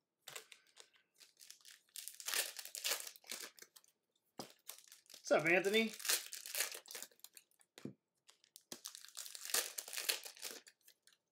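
Foil wrappers crinkle and tear as they are ripped open.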